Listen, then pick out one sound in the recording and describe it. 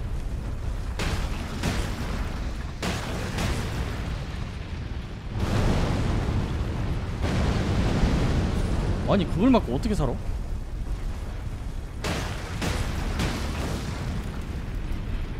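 Heavy blows strike with loud booming impacts.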